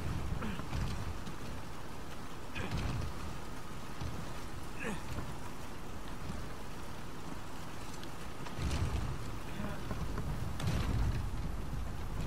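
Water splashes and rushes steadily nearby.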